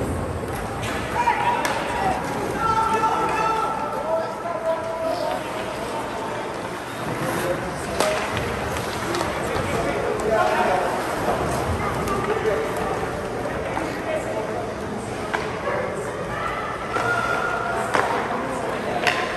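Young players shout to each other across the rink.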